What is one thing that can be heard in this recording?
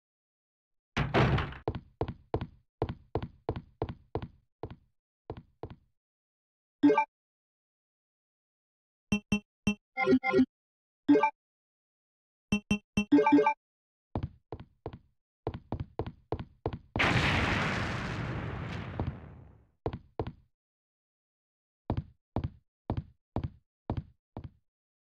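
Footsteps run on a wooden floor.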